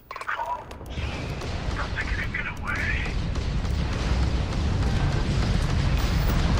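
A spaceship engine roars with a steady low rumble.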